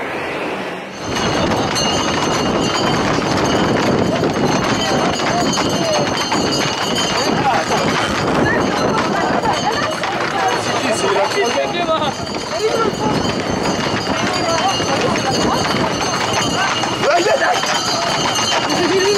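Horse hooves clatter on a road.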